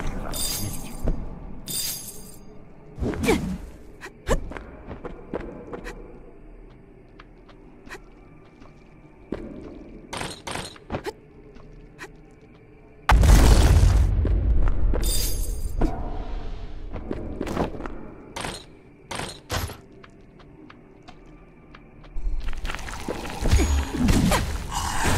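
Sword slashes and hits strike in quick bursts.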